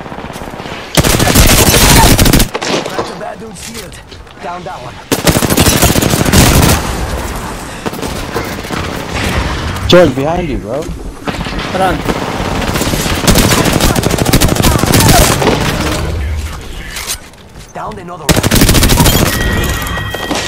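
Rapid gunfire bursts out loudly in short volleys.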